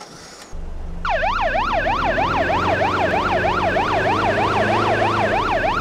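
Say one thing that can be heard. A police car siren wails up and down in quick sweeps.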